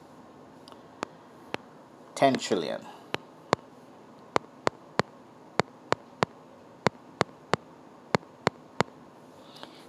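Keys click as digits are tapped on a phone keypad.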